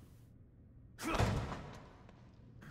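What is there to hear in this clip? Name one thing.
A heavy metal door bangs open.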